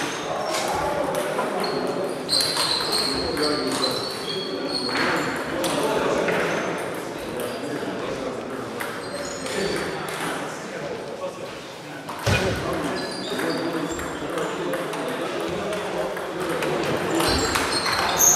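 Ping-pong balls click on tables and paddles.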